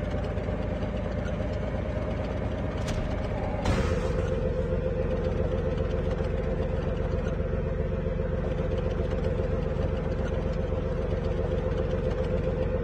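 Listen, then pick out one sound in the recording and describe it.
A tank engine rumbles and its tracks clatter steadily as it drives.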